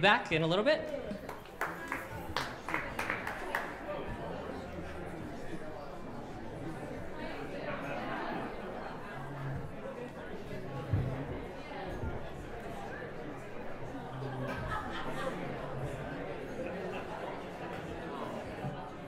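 A crowd of older men and women chatters in the background.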